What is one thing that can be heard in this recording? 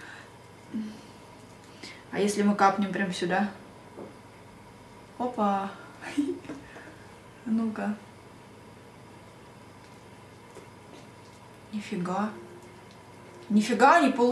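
A young woman talks calmly and close to the microphone, in short bursts.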